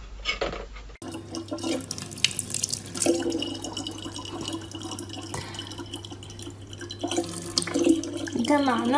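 Water runs steadily from a tap into a plastic bottle.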